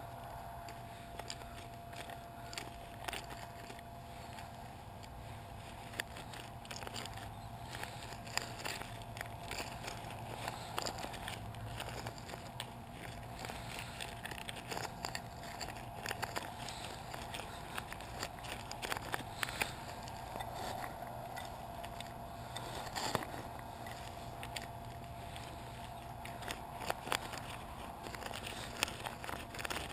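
A metal scoop scrapes and digs into loose rubber chips.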